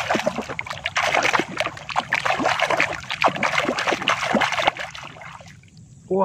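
A hand splashes and churns through muddy water.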